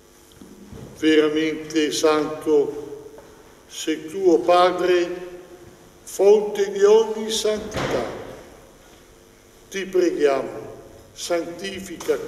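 An elderly man speaks slowly and solemnly into a microphone in an echoing hall.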